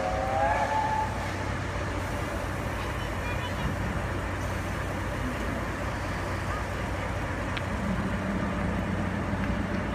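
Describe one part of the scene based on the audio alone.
A diesel locomotive engine idles with a low steady rumble.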